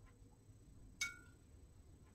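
A paintbrush taps against a jar.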